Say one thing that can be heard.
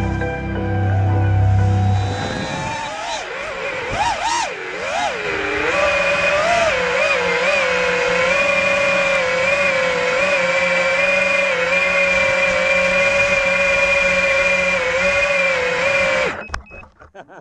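A small drone's motors whine loudly, rising and falling in pitch as it flies.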